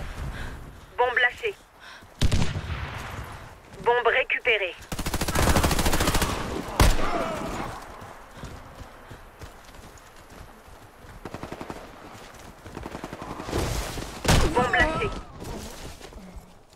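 A man speaks into a microphone with animation, close by.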